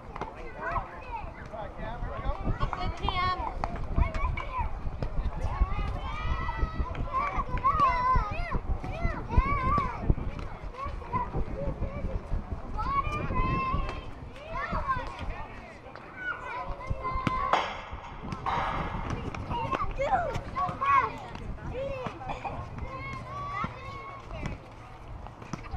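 Young players and adults call out and chatter across an open field.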